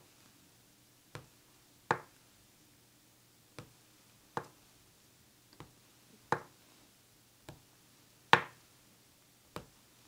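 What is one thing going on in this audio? A paintbrush dabs and brushes softly on canvas.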